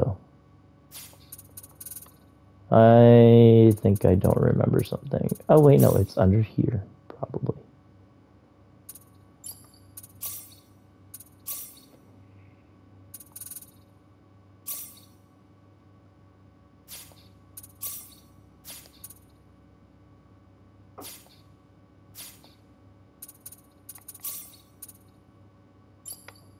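Short electronic menu blips sound as selections change.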